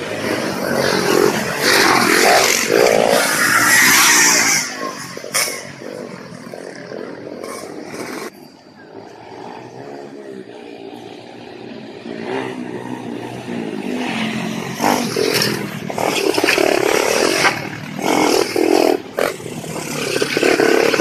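Dirt bikes ride past, their engines rising and falling as they pass.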